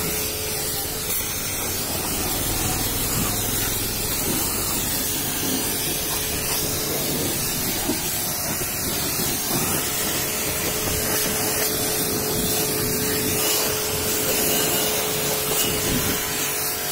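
A pressure washer jet hisses loudly as it sprays water against metal.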